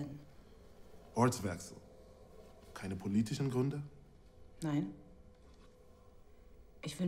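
A man speaks calmly in a low voice nearby.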